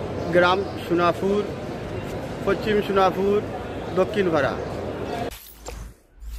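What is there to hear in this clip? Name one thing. A young man speaks into microphones close by, in a calm voice.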